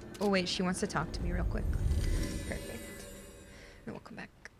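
A magical whoosh swells and fades.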